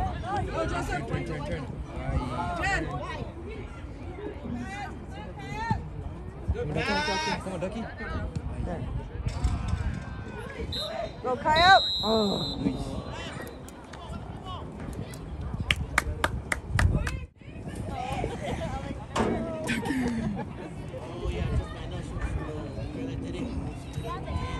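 Young players and spectators shout and call out across an open field.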